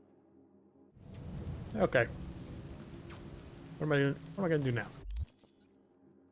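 Rain falls steadily.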